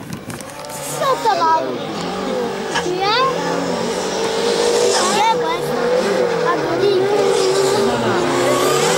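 Tyres squeal on tarmac as a rally car takes a tight turn.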